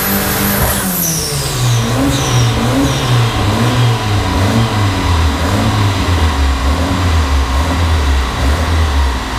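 A car engine drops back to a rough, lumpy idle.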